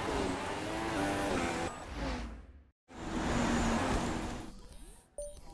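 Tyres hiss over a wet track.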